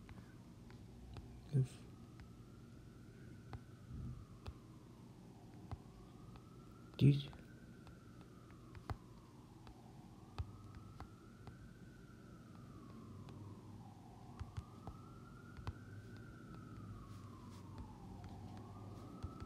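Footsteps thud softly on grass and stone.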